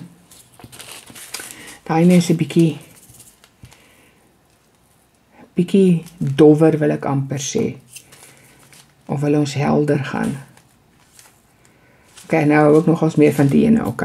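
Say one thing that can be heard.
A plastic bag of beads crinkles and rustles.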